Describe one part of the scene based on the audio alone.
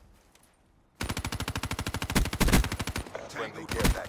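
A heavy automatic gun fires a rapid burst.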